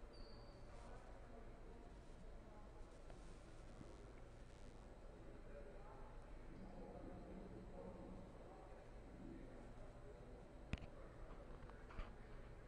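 Two men talk quietly with each other in a large echoing hall.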